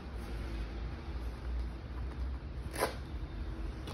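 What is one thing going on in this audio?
A jacket zipper rasps as it is pulled open.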